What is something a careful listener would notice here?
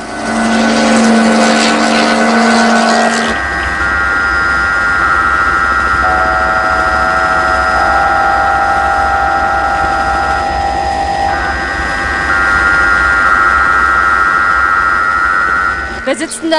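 A helicopter's rotor thumps overhead.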